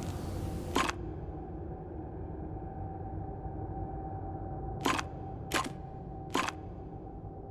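Puzzle tiles click sharply as they rotate.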